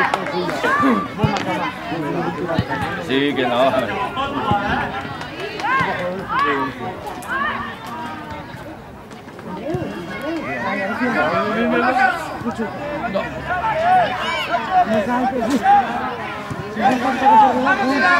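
Young children shout at a distance outdoors.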